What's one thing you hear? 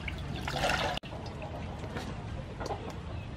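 A chicken is set down in a woven basket.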